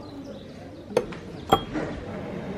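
A metal teapot clinks against a tray.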